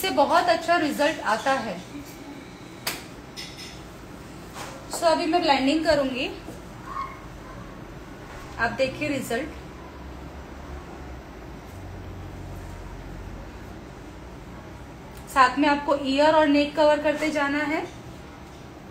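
A young woman speaks calmly and close to the microphone.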